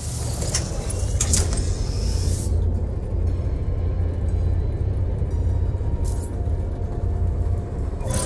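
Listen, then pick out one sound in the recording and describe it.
A low engine hum rumbles steadily.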